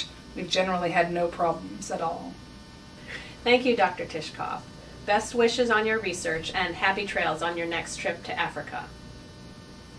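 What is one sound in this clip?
A woman speaks with animation, close to a microphone.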